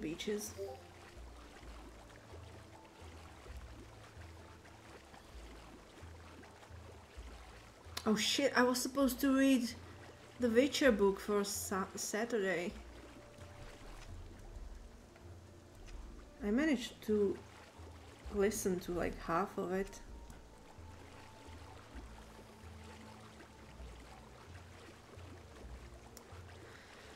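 Water splashes steadily as a swimmer paddles through it.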